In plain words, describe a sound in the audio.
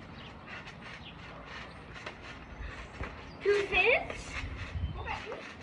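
A trampoline mat thumps and its springs creak as a child bounces.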